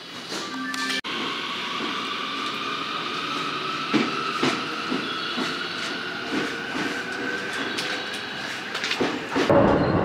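A train pulls past with a rising electric whine.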